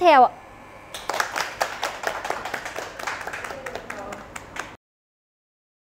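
People applaud.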